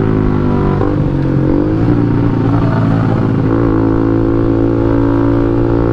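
A motor scooter engine hums steadily as the scooter rides along.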